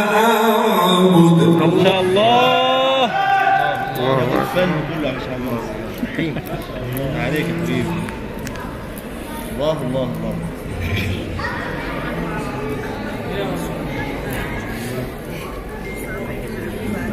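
An elderly man recites in a long, melodic chant through loudspeakers in a large echoing hall.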